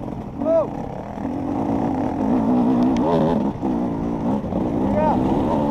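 Another dirt bike engine buzzes a short way ahead.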